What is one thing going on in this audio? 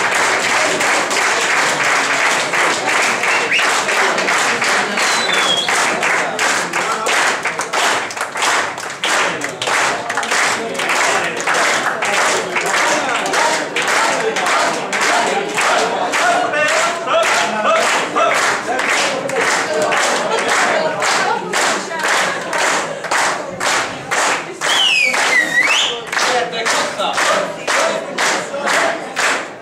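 A crowd of men and women chatters and calls out loudly nearby.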